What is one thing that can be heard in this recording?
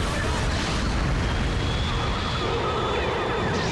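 Water splashes heavily as a giant robot wades through it.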